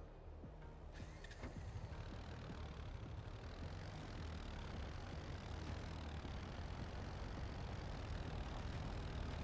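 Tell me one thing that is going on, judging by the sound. Tyres roll over gravel.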